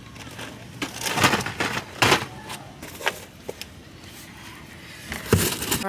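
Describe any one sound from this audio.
Packages thump as they are set down.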